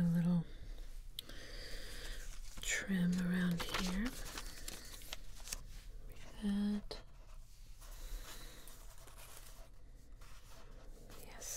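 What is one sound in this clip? Hands rub and press on paper.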